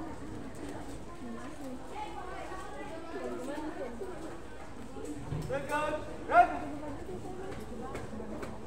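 A young man calls out drill commands loudly outdoors.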